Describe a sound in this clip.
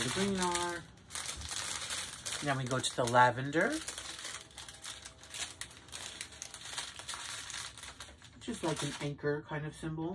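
Plastic film crinkles and rustles.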